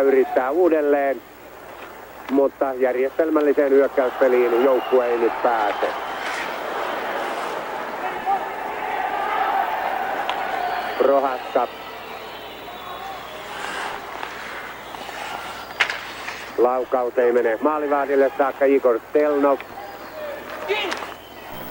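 Skates scrape and swish across ice.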